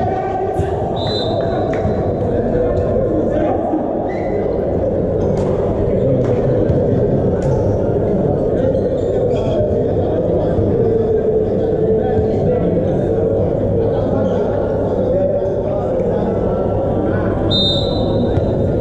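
Athletic shoes squeak on a court floor.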